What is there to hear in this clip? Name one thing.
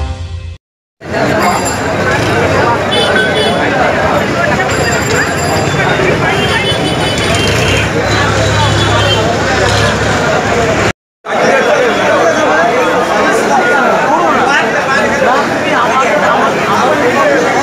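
A crowd of men chatters outdoors.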